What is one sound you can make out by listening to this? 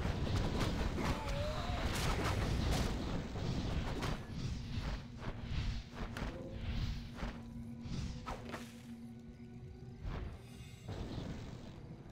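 Swords clash and weapons strike in a busy video game battle.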